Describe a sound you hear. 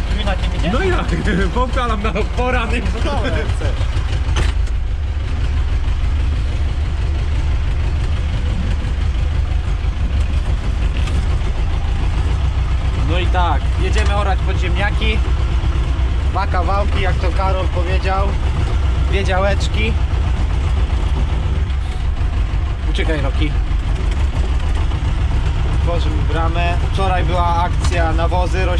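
A tractor engine rumbles steadily, close by.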